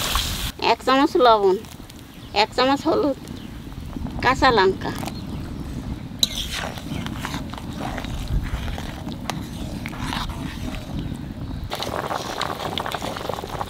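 A pot of soup bubbles and simmers.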